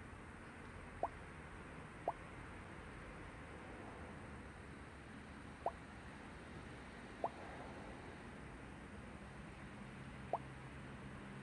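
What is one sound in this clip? Short notification blips sound as new messages arrive.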